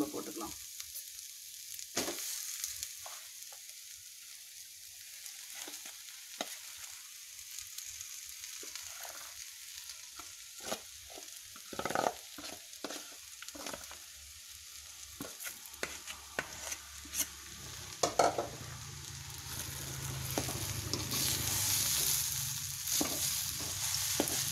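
A metal spoon scrapes and clinks against a pan and bowl.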